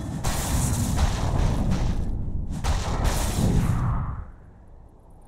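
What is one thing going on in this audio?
Loud magical blasts and impacts crash.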